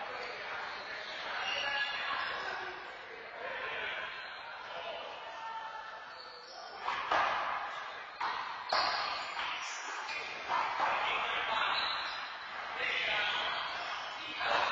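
Adults talk and call out casually in an echoing room.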